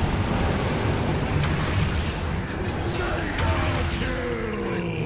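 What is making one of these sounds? Spell effects crackle and burst in a fast game battle.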